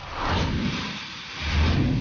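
A fuse fizzles and hisses.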